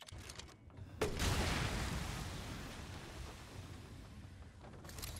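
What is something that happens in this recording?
A gunshot booms and echoes away.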